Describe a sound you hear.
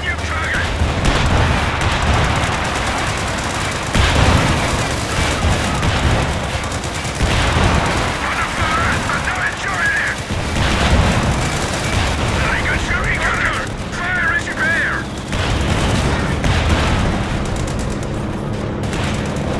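Tank guns fire with heavy thuds.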